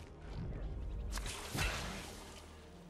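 A game bandage wraps with a soft rustling sound.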